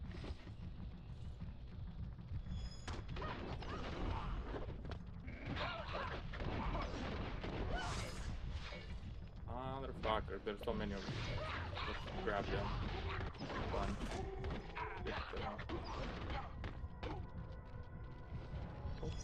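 Video game combat sounds crackle and burst with magic blasts and hits.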